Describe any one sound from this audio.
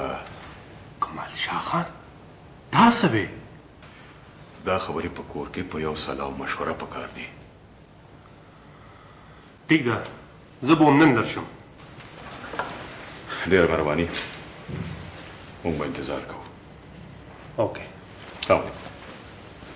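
A middle-aged man speaks with emotion, his voice rising.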